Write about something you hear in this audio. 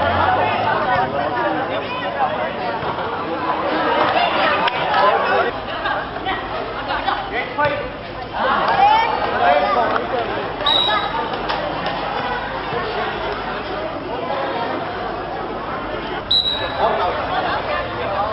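Children shout and call out while playing ball outdoors.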